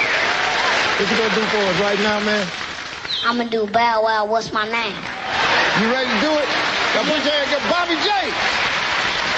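A young boy speaks through a microphone.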